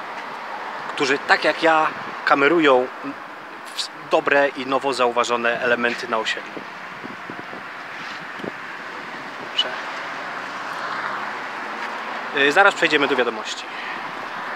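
A man speaks close to the microphone in short bursts.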